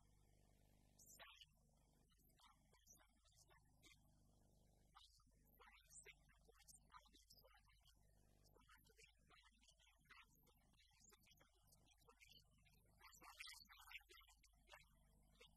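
A middle-aged man speaks steadily into a microphone in a large, echoing hall.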